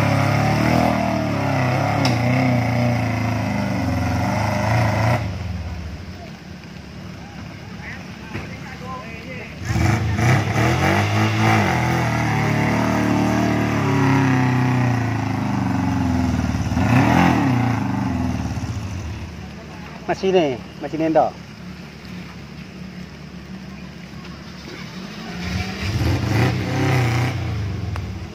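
A small off-road jeep engine revs under load while climbing a muddy slope.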